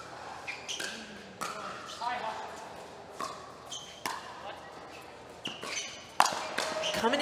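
Pickleball paddles pop sharply as players hit the ball back and forth in a quick rally.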